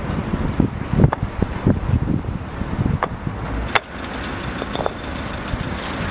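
Paving stones knock against each other as they are laid.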